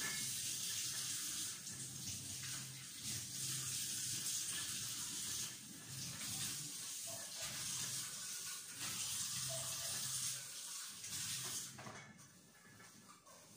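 Dishes clink in a sink.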